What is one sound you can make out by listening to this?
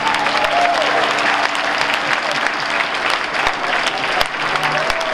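A large audience applauds loudly.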